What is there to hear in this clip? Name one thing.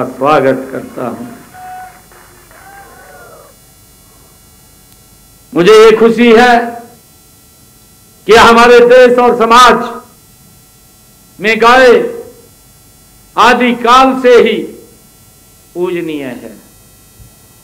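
A man speaks loudly into a microphone in bursts, with a slight echo of a large hall.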